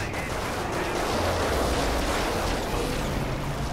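An explosion roars and rumbles.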